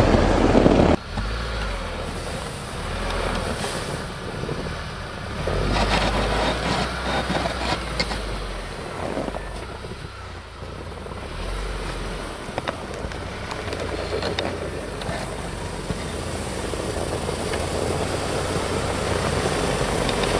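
An engine rumbles and revs as a vehicle climbs through deep snow.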